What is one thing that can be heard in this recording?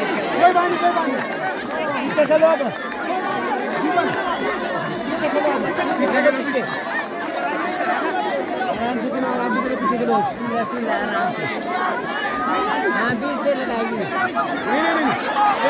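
A large crowd chatters and cheers loudly outdoors.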